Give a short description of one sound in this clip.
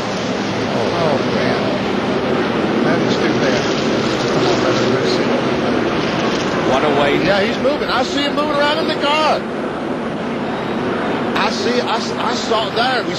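A large crowd roars and murmurs nearby.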